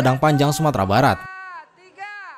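A large group of young people shout together in unison, echoing afterward.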